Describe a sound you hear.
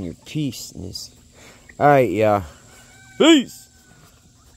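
Chickens cluck and call nearby outdoors.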